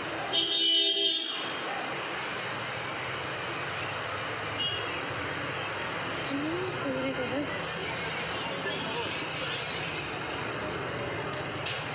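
Road traffic rumbles below.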